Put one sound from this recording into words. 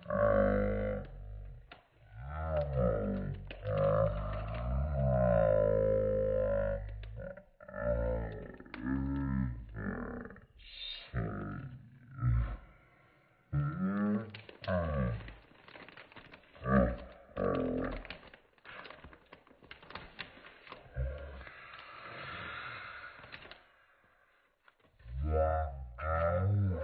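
Plastic bags crinkle and rustle as they are handled.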